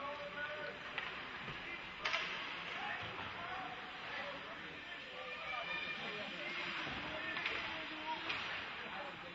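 A hockey stick clacks against a puck.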